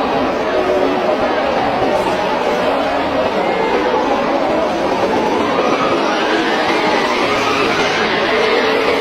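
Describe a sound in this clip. Heavy rain lashes down.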